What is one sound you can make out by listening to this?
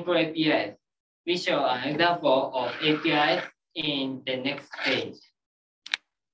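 A man speaks steadily through an online call.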